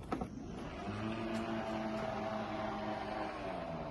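A car's tailgate lifts open.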